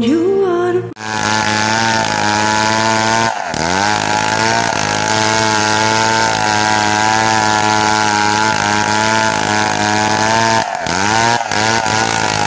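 A chainsaw runs under load, ripping lengthwise through a log.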